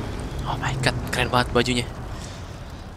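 A young man speaks briefly and with animation into a close microphone.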